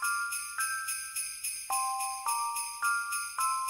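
A piano plays a slow, high melody, one note at a time.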